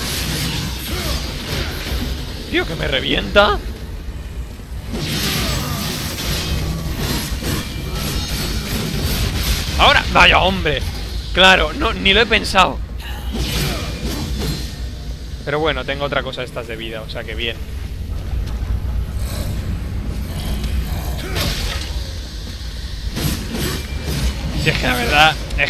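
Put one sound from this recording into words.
Metal blades swish and clash in a fight.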